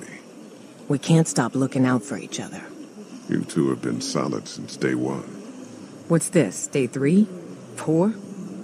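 A young woman speaks lightly and warmly.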